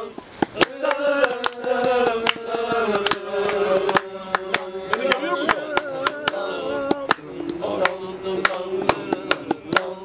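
A young man sings loudly and close by.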